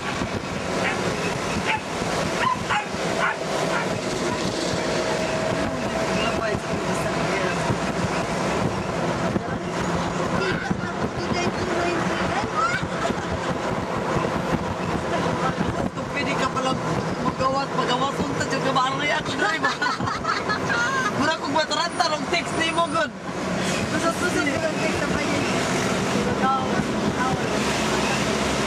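A vehicle engine hums steadily as it drives along a road.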